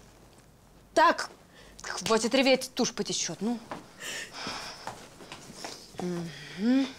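A young woman sobs and wails loudly, close by.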